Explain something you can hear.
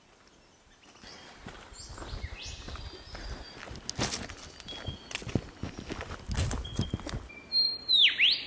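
Footsteps crunch on a dirt and gravel track.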